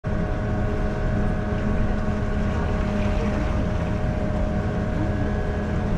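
A bus engine hums steadily from inside the cab.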